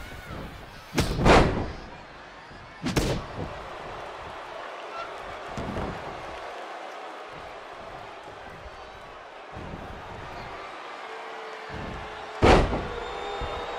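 Heavy bodies slam onto a wrestling mat with loud thuds.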